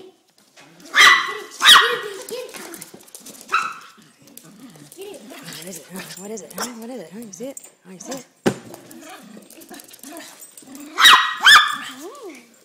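A small dog barks sharply a few times.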